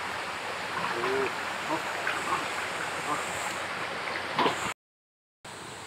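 A man splashes through shallow water.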